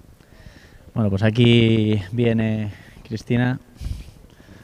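A man speaks loudly through a microphone and loudspeaker, drawing out his words like an announcer.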